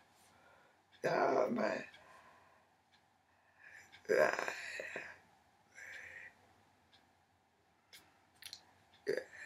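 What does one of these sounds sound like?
An elderly woman speaks in short bursts close by, pausing between phrases.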